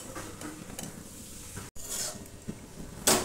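Potato cubes tumble into a metal pan.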